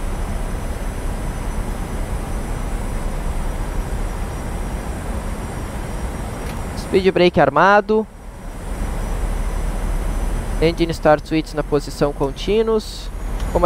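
Jet engines drone steadily with a low rushing rumble.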